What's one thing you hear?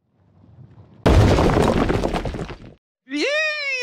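A heavy boulder crashes through a stone wall.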